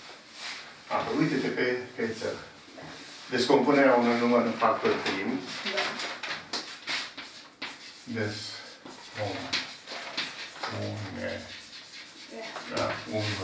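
An elderly man speaks calmly, explaining as he lectures.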